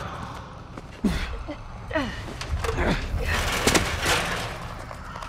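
A metal ladder clanks as someone climbs it.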